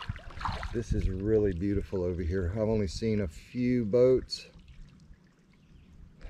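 A kayak paddle splashes into the water in slow strokes.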